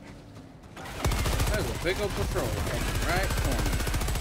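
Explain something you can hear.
A heavy machine gun fires rapidly.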